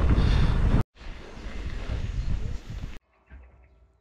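Wind rushes past the microphone as the bike moves.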